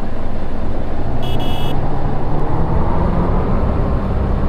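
A bus engine revs up, rising in pitch as it pulls away.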